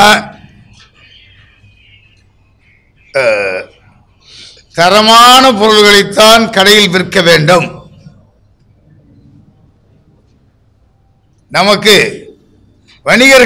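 An elderly man speaks forcefully into microphones, with pauses.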